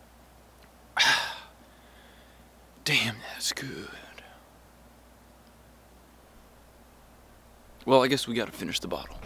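A young man speaks close by, in short outbursts.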